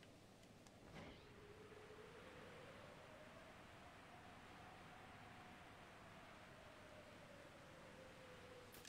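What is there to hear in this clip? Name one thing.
Water rushes in a river.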